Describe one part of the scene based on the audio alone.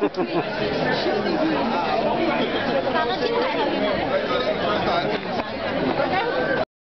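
A dense crowd of men and women chatters loudly all around, in an echoing hall.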